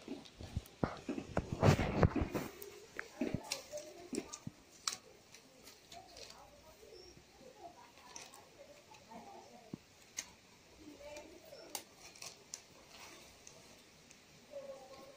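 Stiff palm leaves rustle and crackle as hands weave them.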